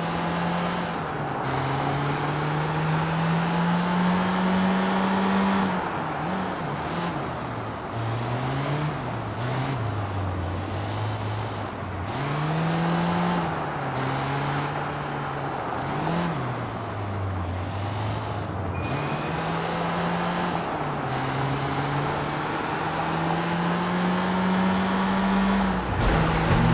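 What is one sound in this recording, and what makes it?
Tyres hiss on a wet road.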